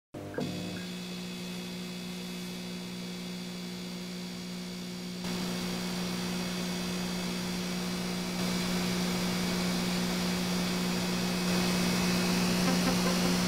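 An old television hisses with static and hums steadily, growing louder.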